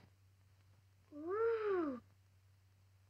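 A young girl makes a drawn-out, rising sound of delight.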